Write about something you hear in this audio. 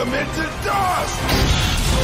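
A young man shouts with effort.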